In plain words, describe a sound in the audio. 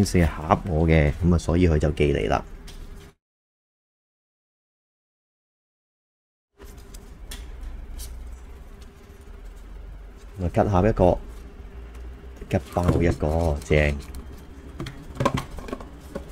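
A cardboard box rustles and scrapes as it is handled and opened.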